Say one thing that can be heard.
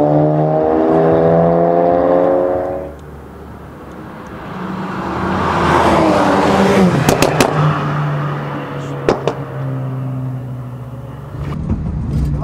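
Two car engines roar loudly as cars race down a track.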